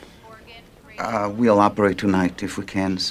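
A middle-aged man speaks calmly into a phone.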